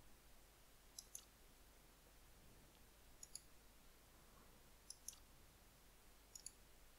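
Short, high electronic clicks sound in pairs now and then.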